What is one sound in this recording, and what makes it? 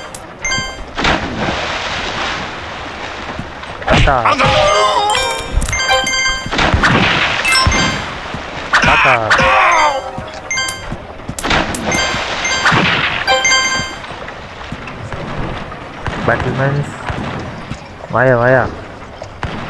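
Quick whooshing and thumping effects sound as a figure jumps and strikes.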